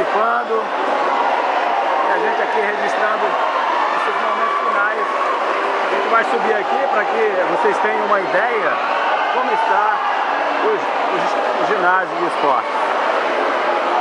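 Men and women talk and shout nearby.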